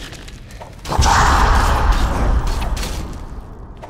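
A magic spell crackles and roars.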